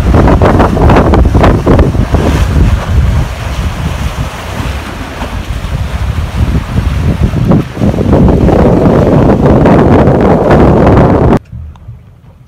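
Wind blows hard across open water.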